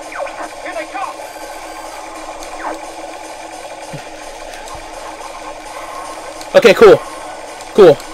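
Laser blasts zap in quick falling bursts.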